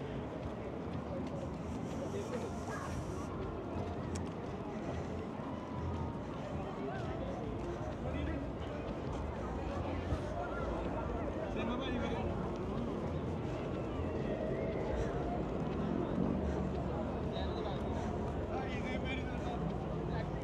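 Distant people chatter and talk outdoors.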